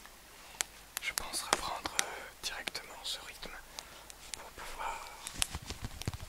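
A young man whispers softly, very close to a microphone.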